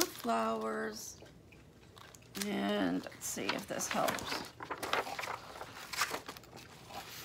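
Plastic packaging crinkles as it is handled.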